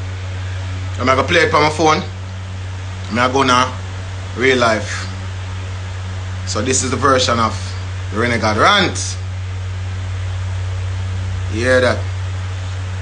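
A man speaks calmly and close by, in short bursts.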